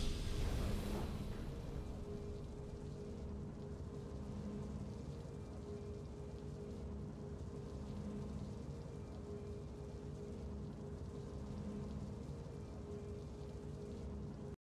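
A soft, steady musical drone plays.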